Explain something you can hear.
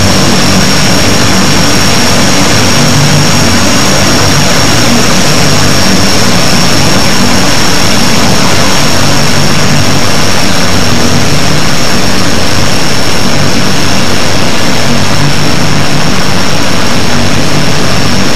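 Jet engines roar steadily overhead.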